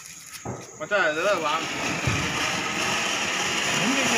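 A firework fountain hisses and sputters.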